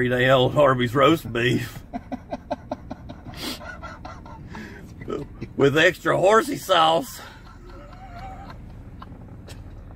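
A second man laughs close by.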